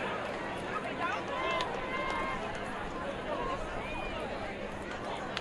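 A crowd chatters and calls out across an open stadium.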